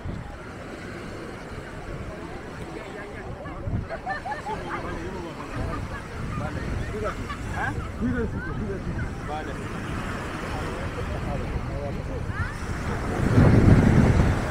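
A crowd of beachgoers chatters in the distance outdoors.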